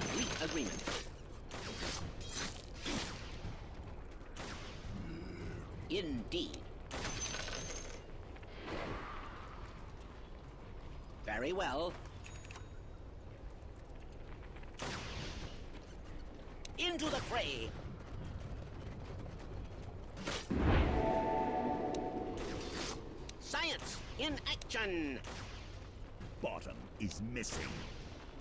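Magic blasts and weapon hits crack and whoosh in quick bursts from a video game battle.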